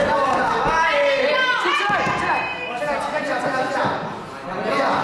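A crowd of spectators shouts and cheers nearby in an echoing hall.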